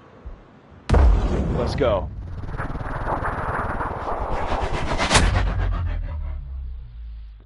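A bullet whooshes and roars through the air.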